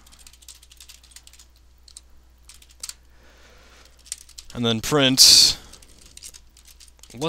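Keyboard keys click rapidly as someone types.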